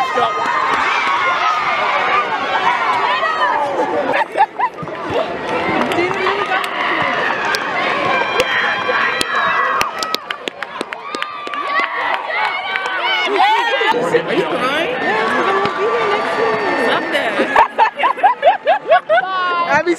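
A crowd of young women cheer and chatter excitedly up close in a large echoing arena.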